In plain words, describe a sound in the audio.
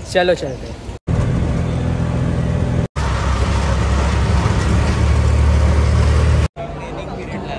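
An auto-rickshaw engine rumbles loudly while driving.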